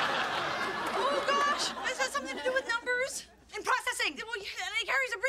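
A young woman speaks excitedly nearby.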